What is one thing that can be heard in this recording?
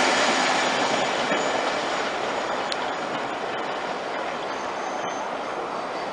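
A subway train rumbles away down the tracks, its roar slowly fading.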